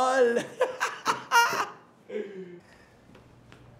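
A man laughs loudly and wildly close by.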